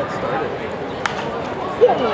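A baseball pops into a catcher's mitt.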